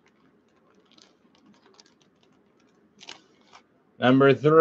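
A plastic wrapper crinkles as it is handled.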